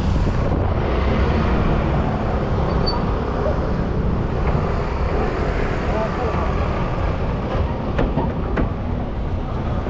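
Motor scooters idle and rev nearby.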